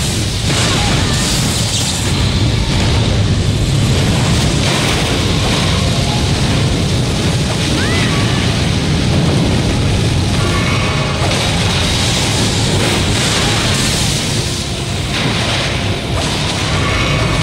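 A huge beast stomps heavily.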